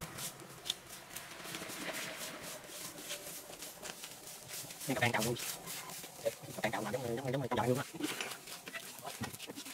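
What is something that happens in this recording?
Grass is pulled and rustles nearby.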